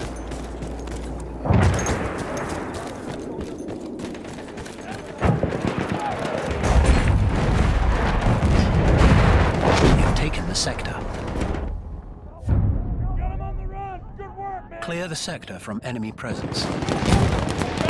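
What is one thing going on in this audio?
Gunshots and explosions crackle and boom in a battle.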